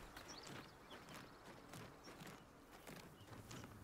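Footsteps crunch on gravel and stone.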